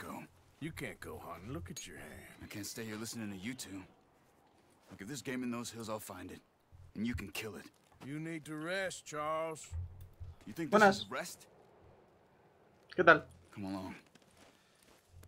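Men talk in calm, low voices.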